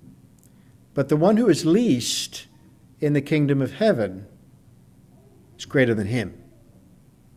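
A middle-aged man speaks calmly into a microphone in a slightly echoing room.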